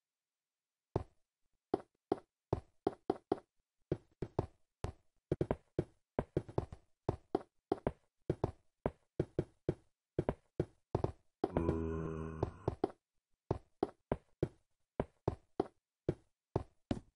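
Footsteps tap quickly and steadily on stone.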